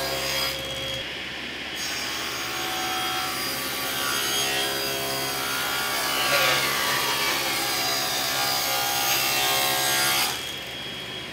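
A saw blade cuts through wood.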